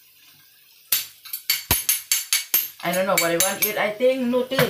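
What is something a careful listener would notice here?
A pestle pounds chilies in a metal pan with dull, repeated knocks.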